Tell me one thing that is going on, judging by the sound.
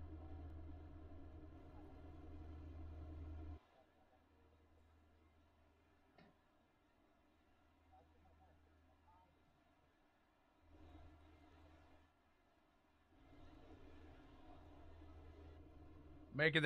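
Race truck engines idle with a steady low rumble.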